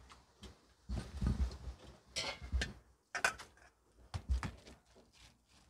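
Metal tongs clink against a steel pot.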